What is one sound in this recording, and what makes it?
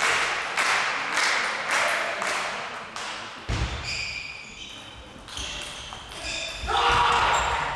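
A table tennis ball clicks back and forth between paddles in a large echoing hall.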